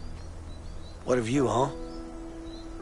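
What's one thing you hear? A man remarks calmly outdoors.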